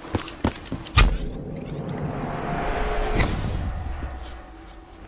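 A loud explosion booms and rumbles away.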